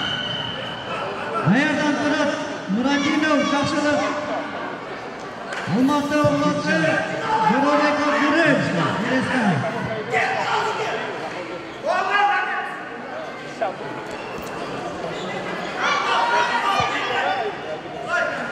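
Spectators murmur and call out in the background.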